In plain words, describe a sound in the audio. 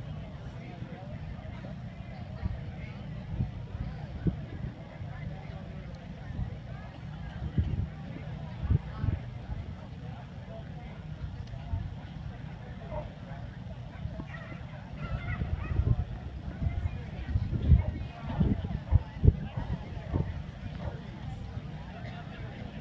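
A crowd of people murmurs and chats quietly outdoors.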